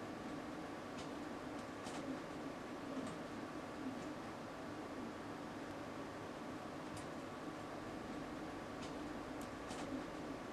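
Small plastic clicks come now and then as fingers handle a small device.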